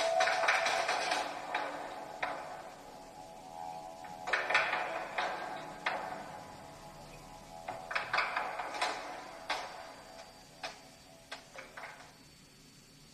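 A small handheld game device plays music and sound effects through its tiny speaker.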